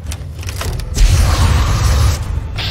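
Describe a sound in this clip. A weapon fires with a loud blast of energy that crackles and fades.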